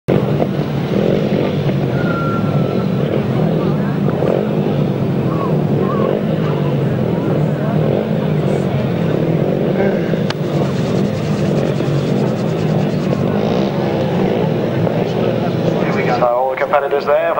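Several motorcycle engines idle and rev loudly outdoors.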